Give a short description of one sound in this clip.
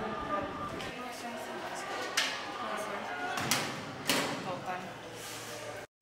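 A metal locker door clanks.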